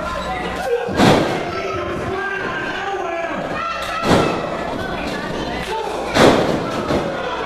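Bodies slam hard onto a wrestling mat with loud thuds.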